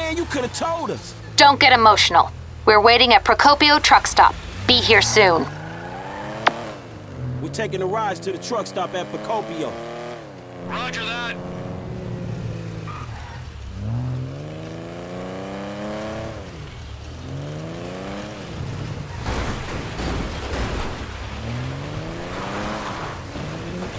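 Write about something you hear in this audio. A car engine revs up and down through gear changes.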